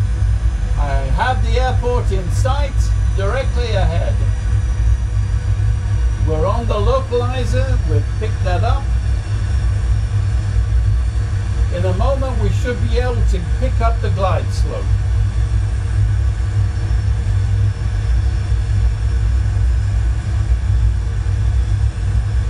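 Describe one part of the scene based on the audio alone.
A low engine rumble drones steadily throughout.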